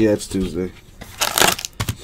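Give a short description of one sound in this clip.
Foil card packs rustle as they are handled.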